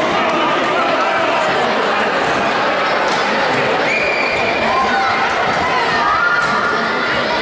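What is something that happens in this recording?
Many people talk and chatter at a distance in a large echoing hall.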